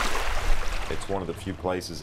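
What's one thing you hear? Small waves wash gently onto a shore.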